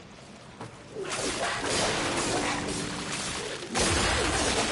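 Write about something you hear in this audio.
A creature screeches and growls.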